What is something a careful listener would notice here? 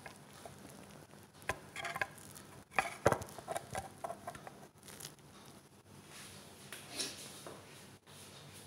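A pot of rice bubbles softly on a stove.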